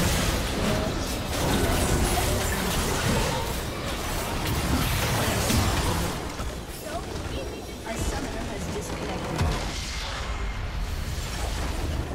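Game spell effects crackle and boom in a busy battle.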